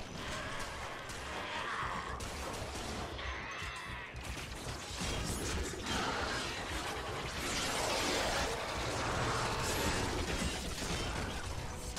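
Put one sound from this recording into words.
Blasts explode in fiery bursts.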